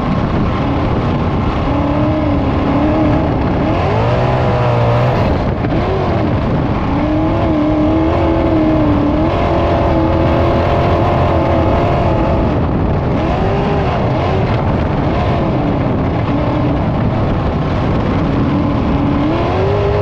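A race car engine roars loudly, rising and falling in pitch as it revs through the turns.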